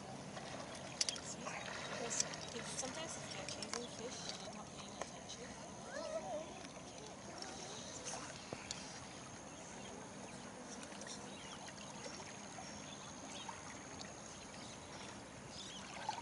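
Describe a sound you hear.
An animal splashes as it swims in the water.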